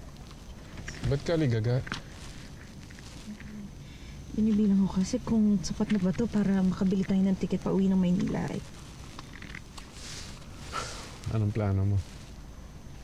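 A man speaks quietly and tensely.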